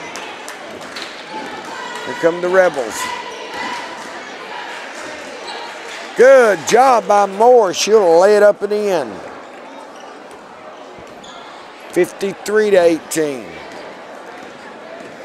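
A basketball thumps as it bounces on a hardwood floor.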